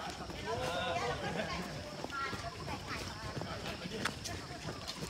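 Men and women in a passing group of runners chatter and call out nearby.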